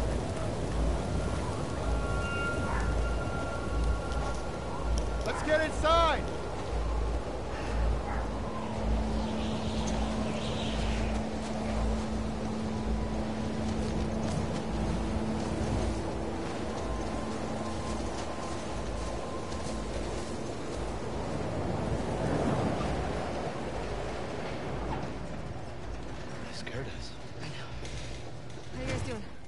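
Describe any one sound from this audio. Wind howls through a snowstorm outdoors.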